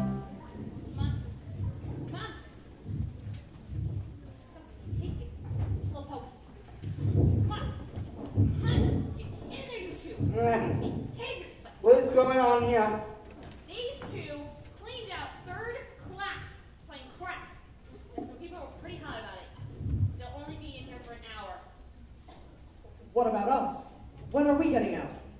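Young women speak lines loudly in a large echoing hall.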